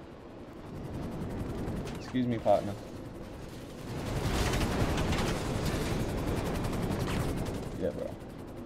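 A jet engine roars.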